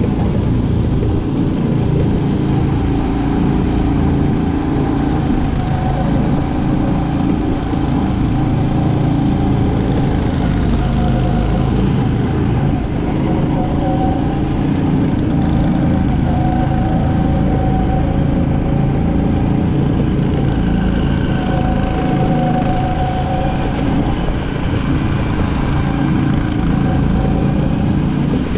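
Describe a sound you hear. A small go-kart engine buzzes loudly up close, rising and falling in pitch.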